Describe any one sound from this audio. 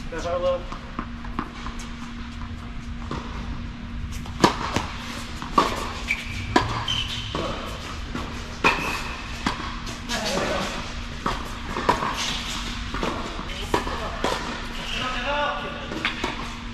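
Tennis balls are struck with rackets in a large echoing hall.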